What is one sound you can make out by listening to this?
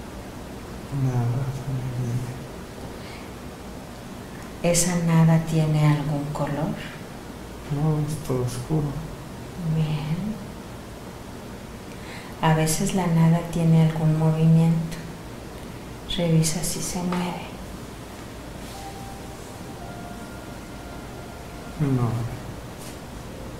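A man speaks slowly in short phrases nearby.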